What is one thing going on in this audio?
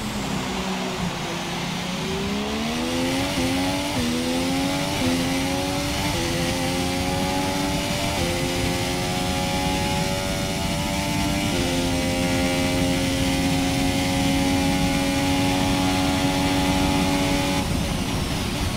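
A racing car engine screams and rises in pitch with quick gear changes.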